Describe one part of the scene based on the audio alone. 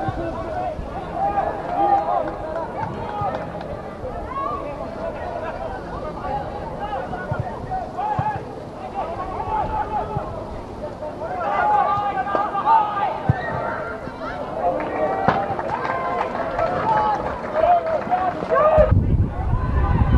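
Men shout to each other outdoors across a pitch.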